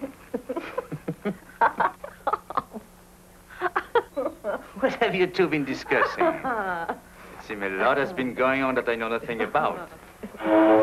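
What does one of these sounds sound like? A man talks warmly and with animation.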